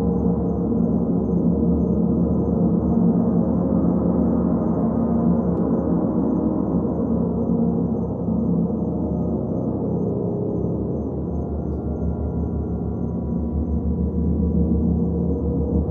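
Large gongs rumble and hum in a deep, steady swell.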